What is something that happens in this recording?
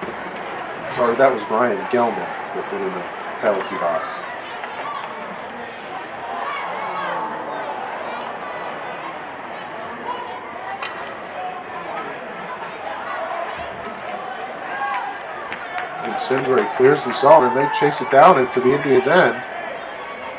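A crowd of spectators cheers and shouts in an echoing rink.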